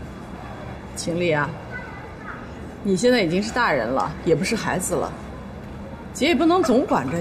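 A young woman speaks calmly and gently.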